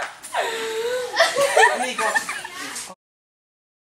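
A teenage girl sings playfully close by.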